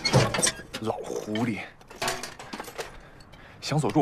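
Metal objects clatter as hands rummage.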